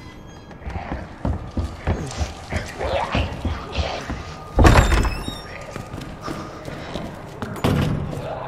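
Footsteps thud on wooden stairs and a hard floor.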